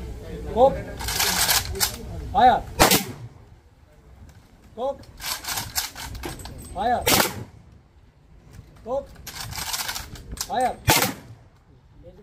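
Rifles fire volleys in unison, cracking sharply.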